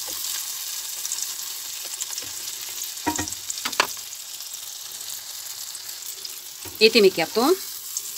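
Food sizzles and crackles as it fries in hot oil.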